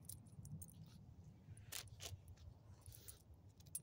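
A dog sniffs at the ground close by.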